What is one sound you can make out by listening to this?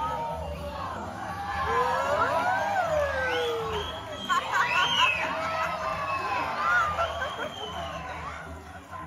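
A crowd of spectators laughs loudly.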